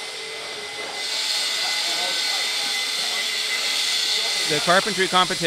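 An angle grinder whines loudly.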